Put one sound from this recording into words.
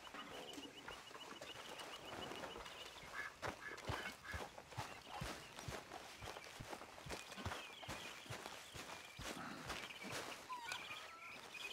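Footsteps crunch on grass and dry leaves.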